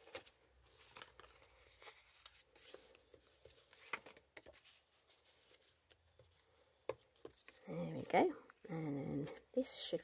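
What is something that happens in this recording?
Stiff card crinkles as it is folded and creased.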